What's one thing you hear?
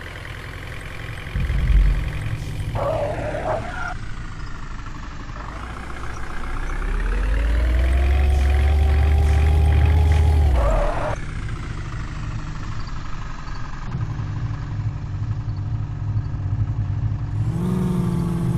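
A heavy diesel engine rumbles and revs.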